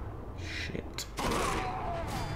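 A heavy body blow lands with a thud.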